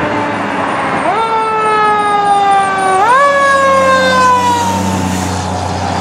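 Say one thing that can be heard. A fire engine's air horn blares loudly, rising and then sliding down in pitch.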